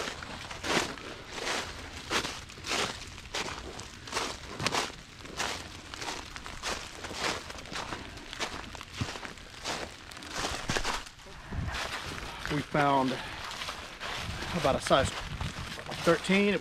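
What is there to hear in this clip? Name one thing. Footsteps crunch through dry leaves at a steady walking pace.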